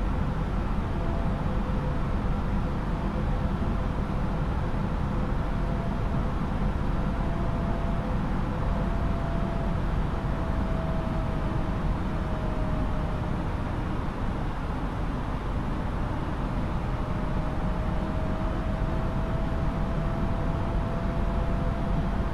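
A jet airliner's engines roar in a steady low drone.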